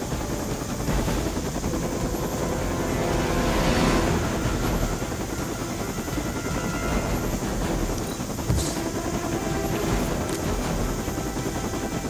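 A helicopter's rotors thump and drone steadily nearby.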